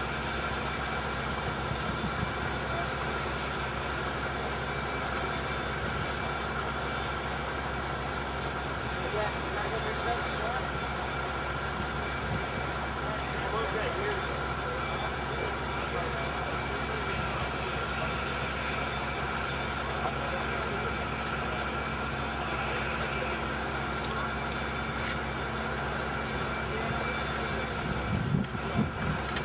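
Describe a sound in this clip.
A motor drones steadily outdoors.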